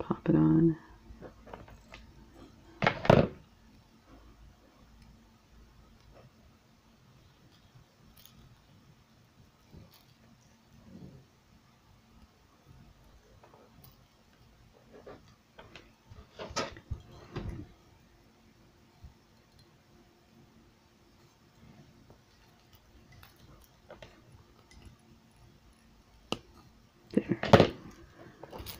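Metal pliers click shut on a small ring.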